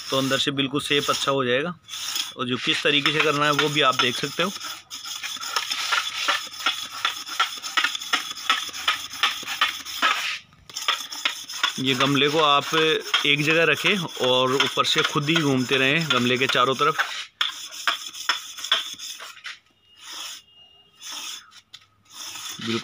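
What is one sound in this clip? A wet sponge rubs and scrapes against rough concrete.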